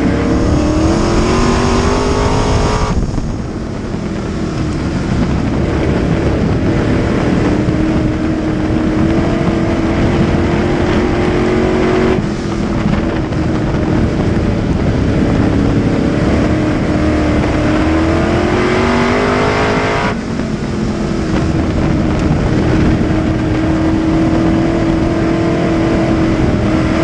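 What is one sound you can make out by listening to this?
A race car engine roars loudly up close, revving up and down through the laps.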